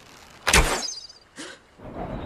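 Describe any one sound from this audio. An arrow whooshes off a bowstring.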